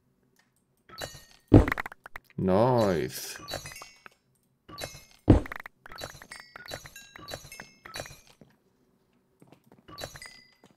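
Stone blocks crack and crumble as they are broken one after another.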